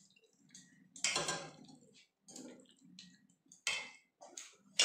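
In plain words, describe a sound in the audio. A metal spoon scrapes and stirs food in a steel bowl.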